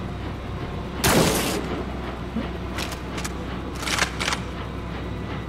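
A weapon fires in short, sharp bursts.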